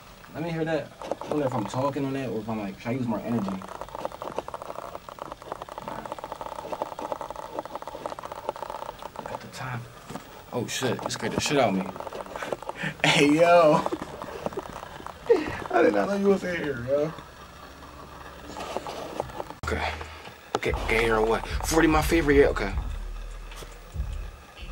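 A young man raps into a microphone close by.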